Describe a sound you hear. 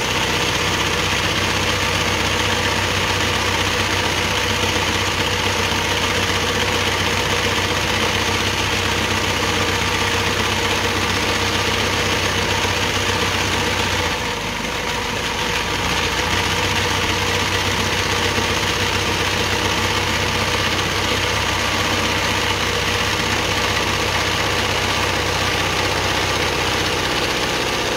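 An embroidery sewing machine stitches through fabric with a fast, even hum and clatter.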